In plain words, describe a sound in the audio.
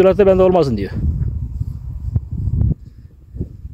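An elderly man speaks calmly, close by, outdoors.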